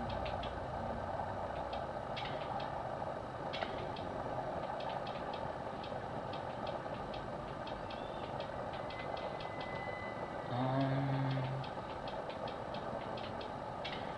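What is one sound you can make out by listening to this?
Short menu clicks tick quickly as a list scrolls.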